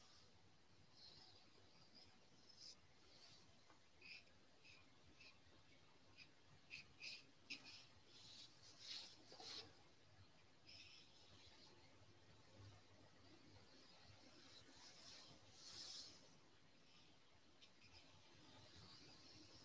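A paintbrush swishes and scrapes softly on canvas.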